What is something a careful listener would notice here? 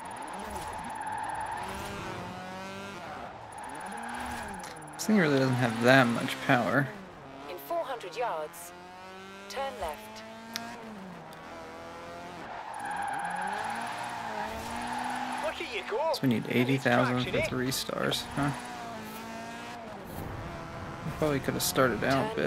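A sports car engine revs hard, rising and falling in pitch.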